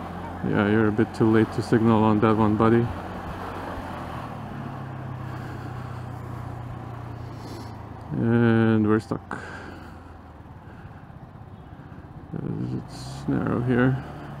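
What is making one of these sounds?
A motorcycle engine hums steadily as it rides along a street.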